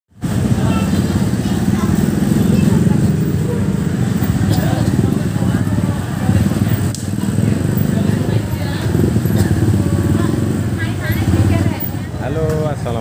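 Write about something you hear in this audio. Motorbike engines rumble and idle in a busy crowd.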